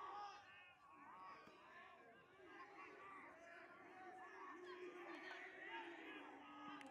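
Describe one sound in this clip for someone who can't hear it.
Young men shout across an outdoor field.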